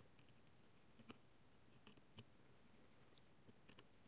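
A screwdriver scrapes lightly against a circuit board.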